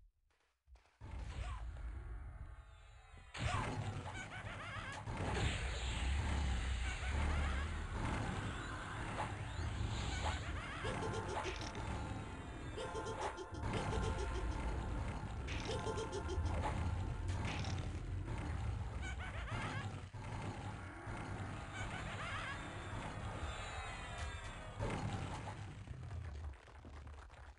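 Magic spells crackle and boom as fighters clash.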